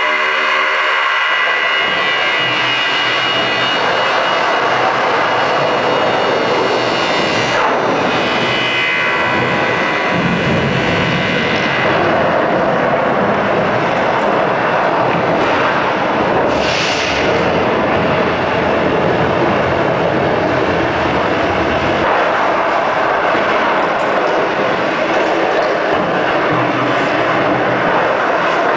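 Loud electronic dance music plays over a powerful sound system.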